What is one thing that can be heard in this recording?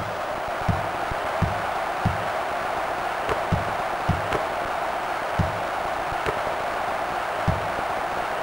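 A crowd murmurs and roars steadily in the background.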